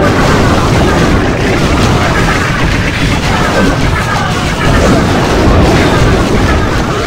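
Game battle sounds of explosions and clashing weapons play.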